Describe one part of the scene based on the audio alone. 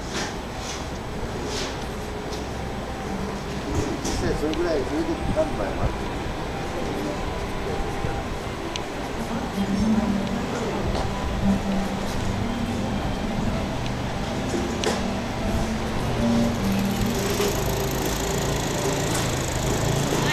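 Outdoor street noise hums steadily.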